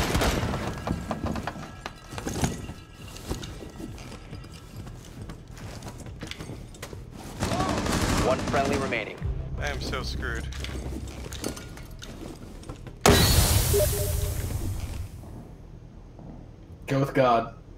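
Footsteps shuffle over debris-strewn ground.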